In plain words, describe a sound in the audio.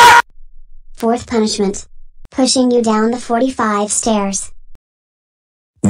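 A young man wails and sobs.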